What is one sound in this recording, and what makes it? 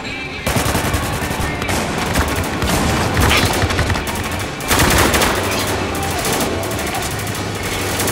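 Rifles fire in rapid, loud bursts nearby.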